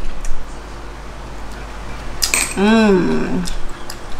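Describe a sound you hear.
Empty shells clink as they drop into a ceramic bowl.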